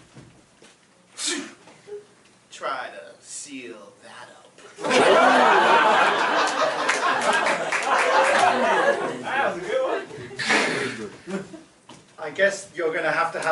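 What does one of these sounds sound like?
A man speaks with animation to an audience.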